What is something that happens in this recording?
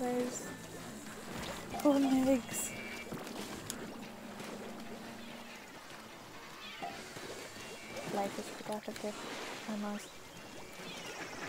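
Video game ink guns splat and squish in quick bursts.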